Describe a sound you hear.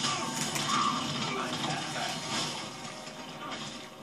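A fiery blast roars through a television speaker.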